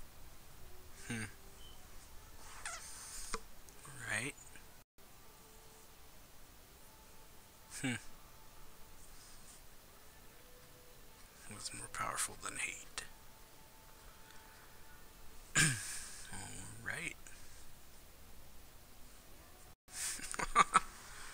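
A man speaks casually into a nearby microphone, in short bursts.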